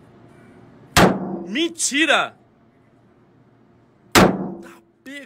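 A pistol fires loud shots indoors.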